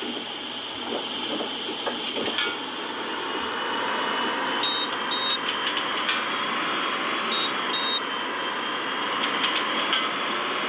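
A bus engine hums steadily and speeds up as the bus drives along a road.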